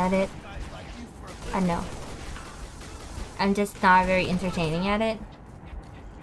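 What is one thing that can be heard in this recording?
A young woman speaks animatedly into a microphone, with a high, playful voice.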